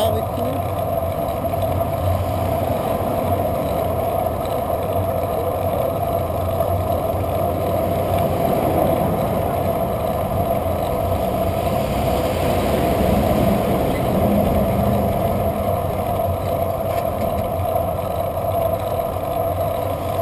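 A bicycle rolls along a paved road.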